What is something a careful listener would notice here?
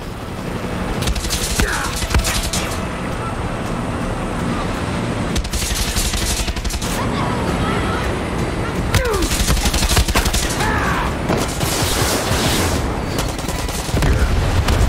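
Rapid gunfire bursts loudly.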